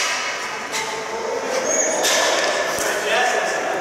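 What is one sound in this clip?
Lacrosse sticks clack together on the floor.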